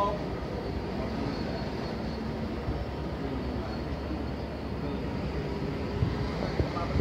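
A freight train rumbles steadily past, wheels clattering on the rails.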